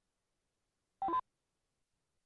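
A short electronic menu chime sounds.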